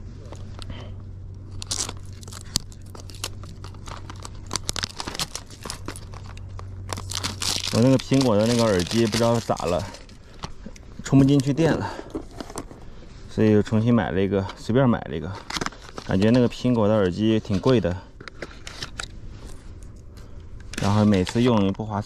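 Cardboard packaging rustles and crinkles in hands.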